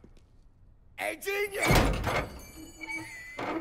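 A man shouts loudly from close by.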